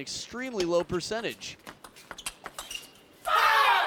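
A ping-pong ball clicks quickly back and forth off paddles and the table.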